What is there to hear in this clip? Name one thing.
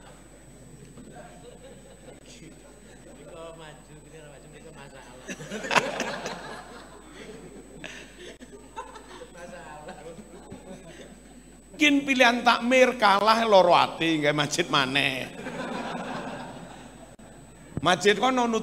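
An elderly man talks and laughs into a microphone in a reverberant hall.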